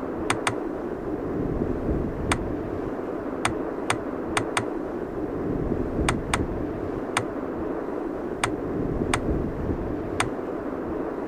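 Short, sharp menu clicks sound again and again as the entries change.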